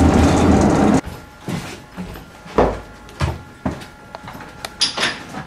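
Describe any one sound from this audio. A tram's fittings clatter and knock.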